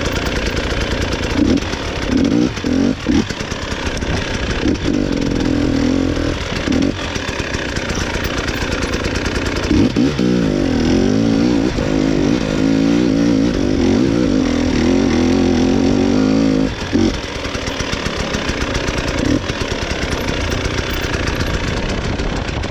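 A motorbike engine revs unevenly as it climbs.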